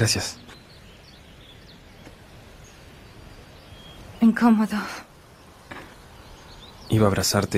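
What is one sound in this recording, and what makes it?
A young man speaks calmly outdoors.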